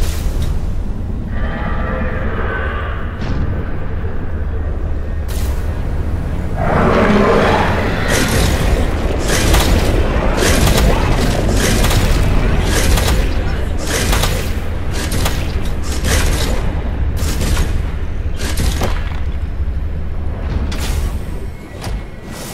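A submarine engine hums with a deep, steady rumble.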